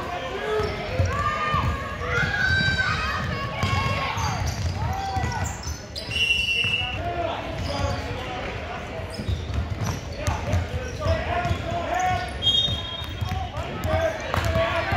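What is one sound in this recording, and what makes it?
Spectators call out and cheer.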